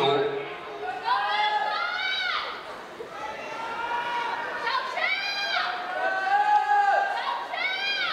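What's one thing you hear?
Young spectators shout to cheer runners on outdoors.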